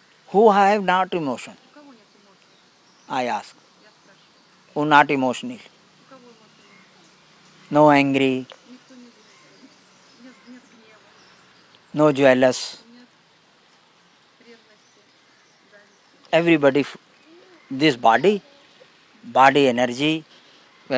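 An elderly man speaks slowly through a microphone, in short phrases with long pauses.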